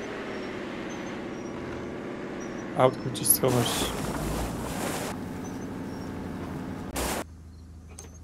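A car engine hums while driving on a dirt road.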